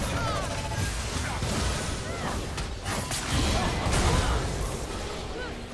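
Fantasy game spells whoosh and crackle during a fight.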